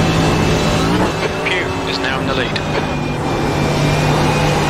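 A racing car engine briefly dips as the driver lifts off, then climbs again.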